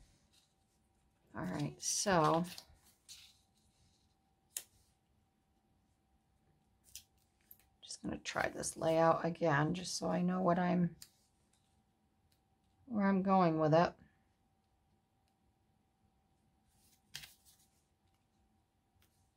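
Paper rustles and slides softly under hands.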